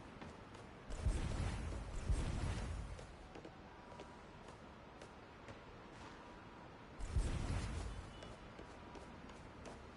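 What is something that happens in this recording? Heavy footsteps thud quickly on a hard surface.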